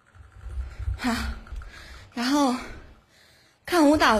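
A young woman sings into a close microphone.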